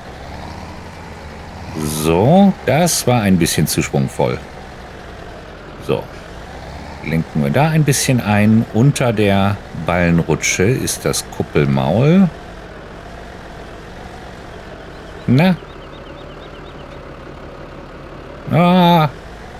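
A tractor engine hums steadily at idle.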